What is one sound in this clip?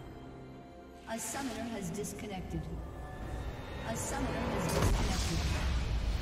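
Game spell effects crackle and boom.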